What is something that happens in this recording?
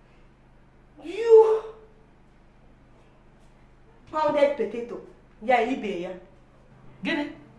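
A teenage girl speaks up close in short, emotional bursts.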